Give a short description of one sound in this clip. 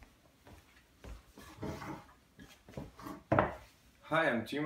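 A man sits down with rustling clothes.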